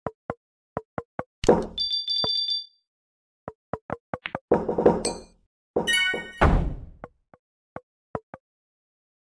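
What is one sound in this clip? Short game sound effects pop and click repeatedly.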